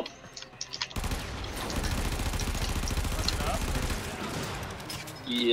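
Gunfire and energy blasts crackle from a video game.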